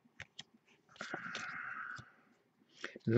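Trading cards slide and rustle against each other as they are shuffled.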